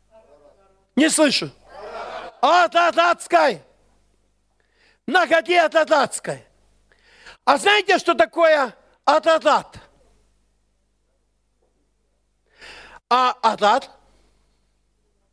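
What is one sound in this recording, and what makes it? A middle-aged man preaches loudly and with passion into a headset microphone, in bursts with pauses.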